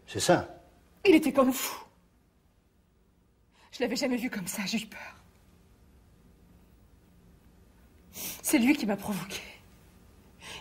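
A woman speaks tensely and emotionally, close by.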